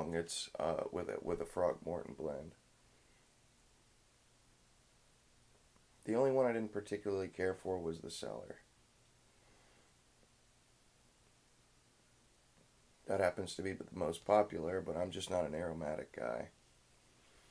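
A young man talks calmly close by, in short bursts with pauses.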